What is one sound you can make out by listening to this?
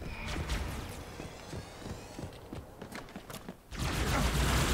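A plasma weapon fires in rapid bursts.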